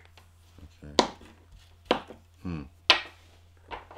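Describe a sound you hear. Plastic game pieces knock on a wooden table.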